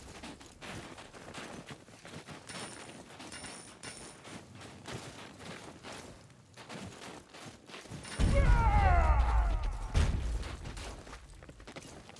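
Footsteps thud on snowy wooden planks.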